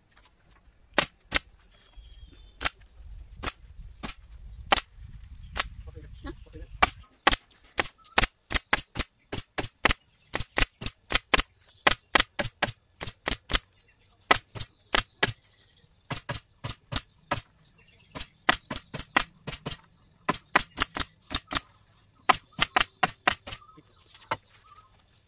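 A pneumatic stapler fires staples in rapid, sharp bursts.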